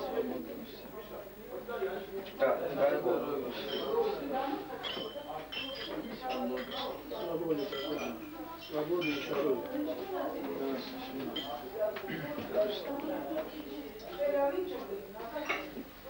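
A man speaks loudly, making a toast.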